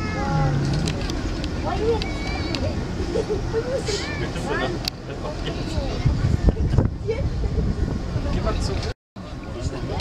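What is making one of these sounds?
A crowd of passengers chatters on a passing boat nearby.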